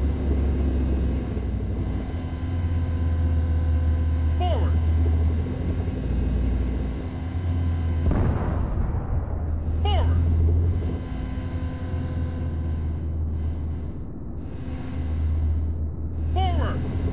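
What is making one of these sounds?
A vehicle engine rumbles low and steadily.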